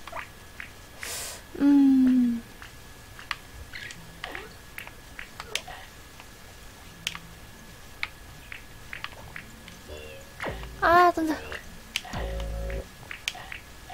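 Short electronic game sound effects chime and whoosh now and then.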